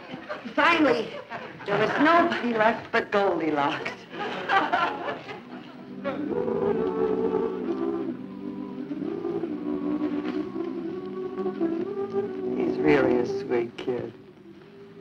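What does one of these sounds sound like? A middle-aged woman speaks with animation, close by.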